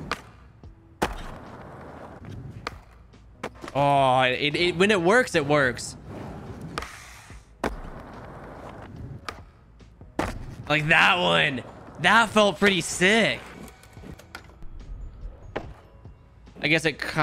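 A skateboard snaps and clacks as it lands tricks.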